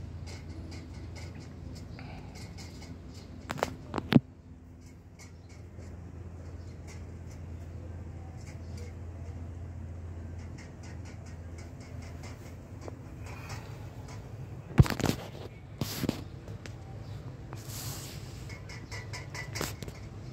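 Cats lap milk from a metal bowl with quick wet licks.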